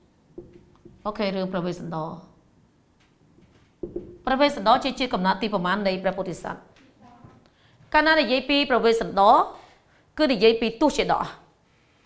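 A woman speaks calmly in a clear voice, close by.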